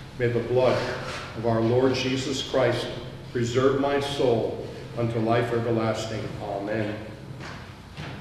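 An elderly man speaks steadily through a microphone in an echoing hall.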